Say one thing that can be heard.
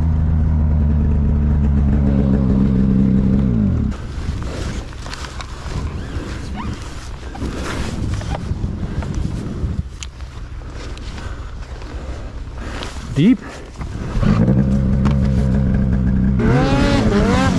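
A snowmobile engine idles with a low steady rumble.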